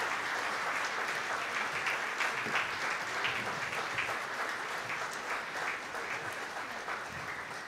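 An audience claps and applauds steadily in a large echoing hall.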